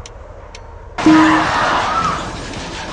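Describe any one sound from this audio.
A bus crashes with a loud crunching impact.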